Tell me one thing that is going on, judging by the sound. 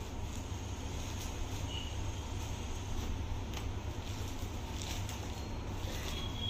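Fabric rustles as silk cloth is unfolded and handled.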